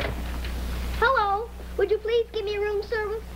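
A young girl wails loudly nearby.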